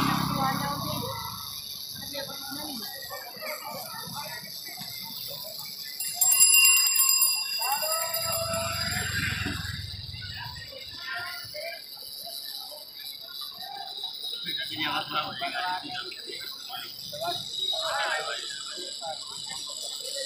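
A crowd of people chatters outdoors in the background.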